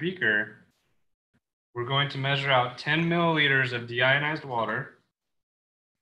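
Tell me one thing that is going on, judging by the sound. A man speaks calmly, heard through an online call.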